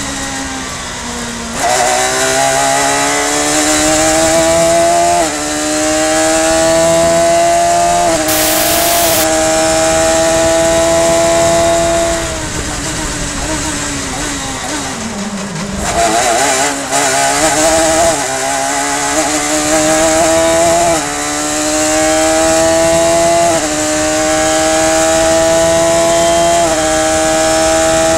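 Wind rushes loudly past an open cockpit.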